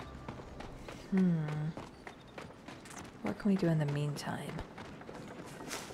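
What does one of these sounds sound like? Quick footsteps run over dirt and grass.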